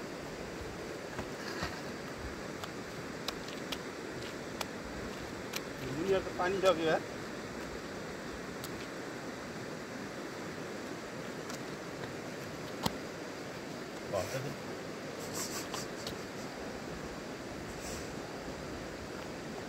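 A man's footsteps squelch softly on wet sand.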